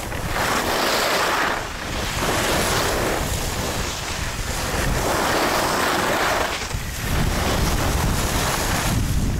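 Skis carve and scrape across hard snow in surging swooshes.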